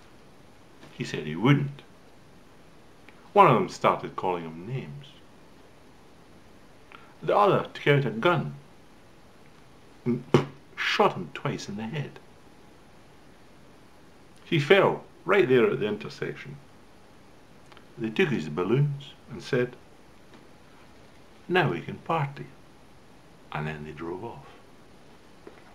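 An elderly man speaks calmly in bursts close to a microphone, with pauses between phrases.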